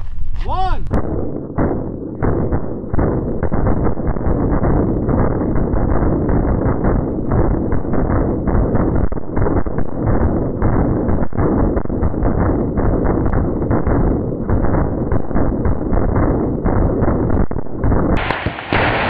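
A huge explosion roars and rumbles on.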